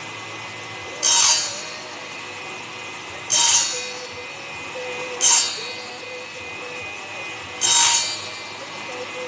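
A hand tool scrapes sharply against metal in short bursts, a few seconds apart.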